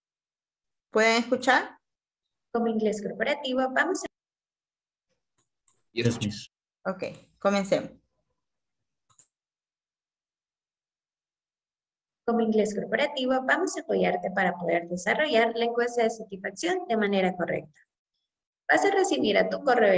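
A woman speaks over an online call, explaining calmly.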